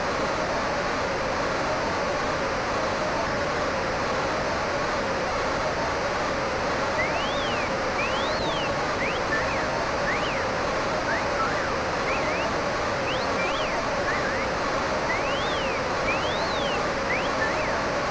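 A large crowd roars steadily in an arena.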